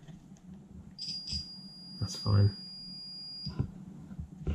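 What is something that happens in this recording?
A multimeter beeps steadily as test probes touch a circuit.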